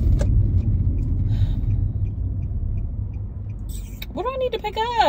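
A car engine rumbles low and steady while driving.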